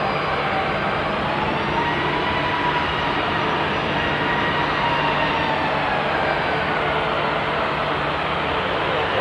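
A jet airliner's engines whine and roar steadily as it taxis close by.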